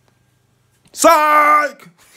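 A man shouts loudly close to the microphone.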